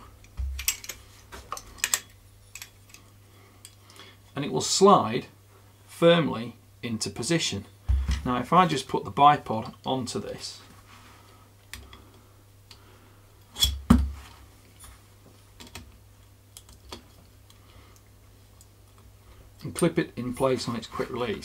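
Metal parts click and knock as a rifle is handled and a bipod is fitted.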